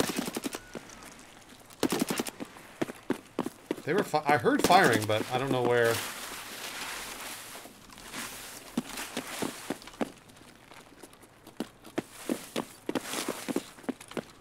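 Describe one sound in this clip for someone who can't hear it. Footsteps crunch on gravel and concrete.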